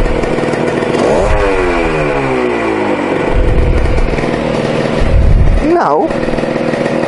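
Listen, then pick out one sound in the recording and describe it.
A motorcycle engine revs up and falls back.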